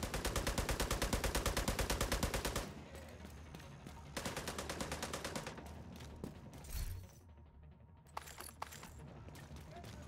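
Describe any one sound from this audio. Heavy footsteps crunch over rubble.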